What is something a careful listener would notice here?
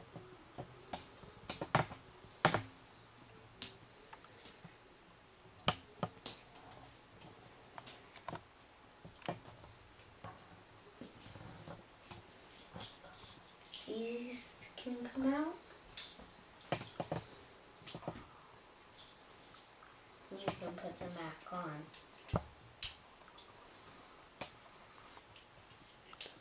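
Plastic toy bricks click and snap together close by.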